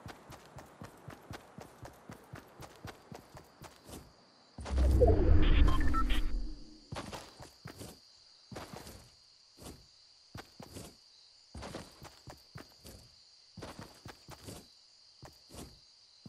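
Footsteps run quickly over grass.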